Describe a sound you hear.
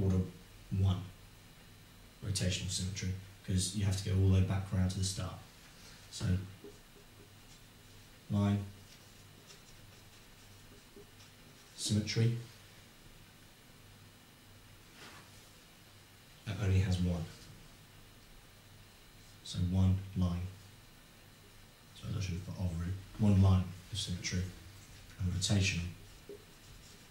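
A young man explains calmly in a close voice.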